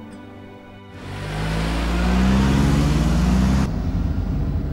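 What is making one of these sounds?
A car engine hums as a car drives past.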